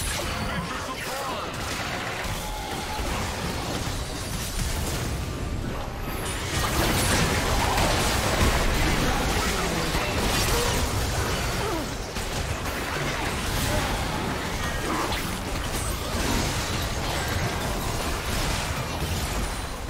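Fantasy battle sound effects whoosh, zap and crash rapidly.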